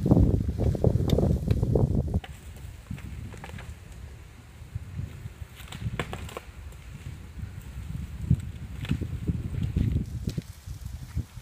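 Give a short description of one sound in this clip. A four-wheel drive creeps slowly along a dirt track, its engine running low.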